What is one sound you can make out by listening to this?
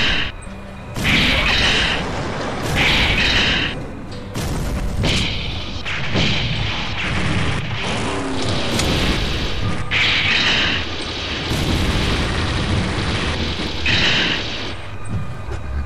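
A tank's cannons and guns fire in loud bursts.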